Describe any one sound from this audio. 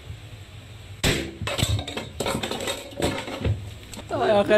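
Objects clatter and crash as a man falls.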